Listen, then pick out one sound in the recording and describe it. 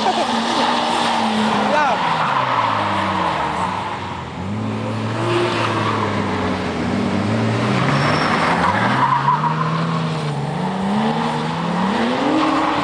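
A car engine revs hard, rising and falling in pitch.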